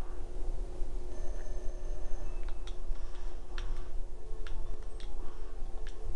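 Short electronic game sound effects blip and zap.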